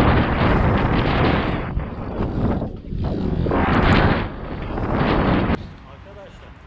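Bike tyres roll and rumble over concrete ramps.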